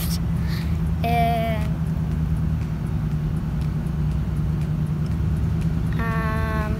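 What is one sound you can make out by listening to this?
A young girl speaks close by, calmly, in short bursts.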